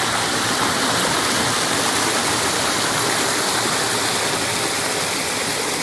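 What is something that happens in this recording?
Water from a small waterfall splashes over rocks.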